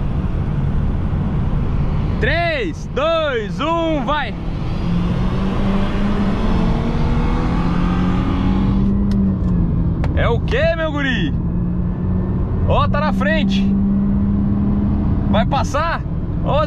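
Wind rushes loudly past an open car window.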